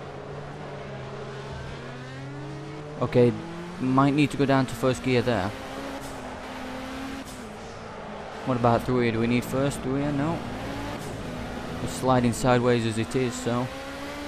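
A racing car engine roars steadily, its pitch rising and falling with the gear changes.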